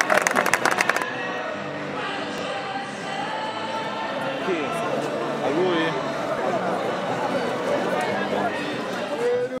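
A crowd of young people chatters outdoors.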